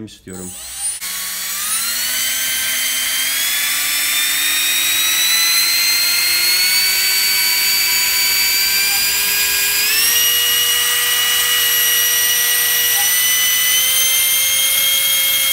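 A small electric fan whirs with a high whine that rises in pitch as it speeds up.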